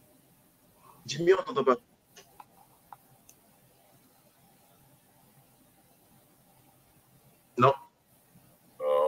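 A man speaks in short bursts over an online call.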